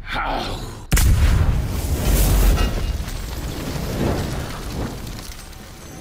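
A large creature bursts apart with a wet, crunching crash.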